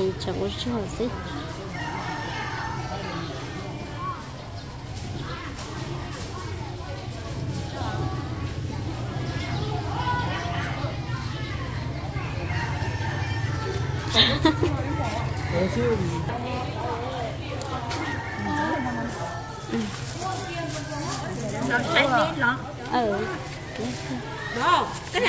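Women talk with animation close by.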